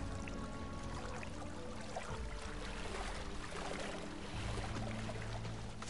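Large birds splash as they run through shallow water.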